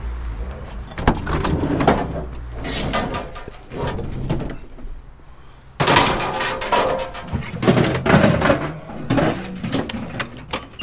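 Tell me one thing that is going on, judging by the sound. Plastic and metal junk clatters as it is handled and moved.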